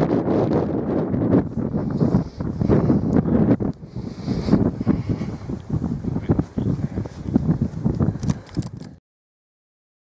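Strong wind blows outdoors and rumbles against the microphone.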